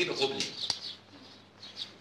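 A man speaks quietly up close.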